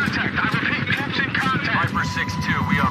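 Helicopter rotors thump overhead.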